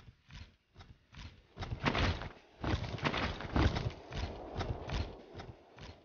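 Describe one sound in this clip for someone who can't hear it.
Heavy footsteps clank quickly on a hard floor.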